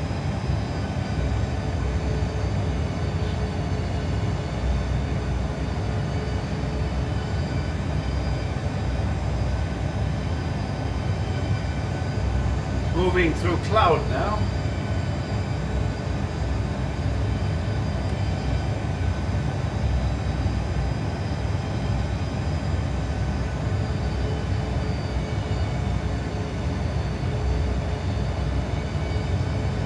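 A steady low roar of engines and rushing air fills an aircraft cockpit.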